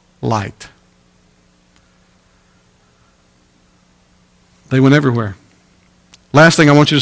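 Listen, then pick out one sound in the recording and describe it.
A man speaks with emphasis through a microphone, in short bursts with long pauses.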